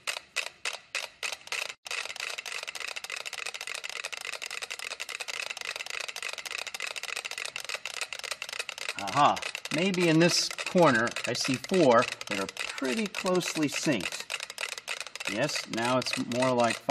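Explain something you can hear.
Many metronomes tick rapidly out of step, in a dense clatter of clicks.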